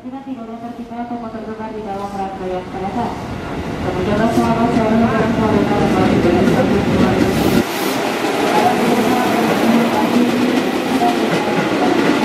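An electric train's motors whine, rising in pitch as the train pulls away.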